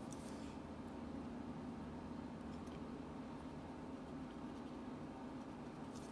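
A pen scratches lightly on a surface.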